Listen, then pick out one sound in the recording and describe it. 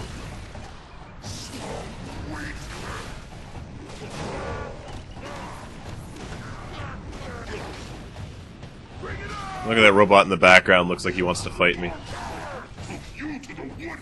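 Heavy blows thud and crash during a fight.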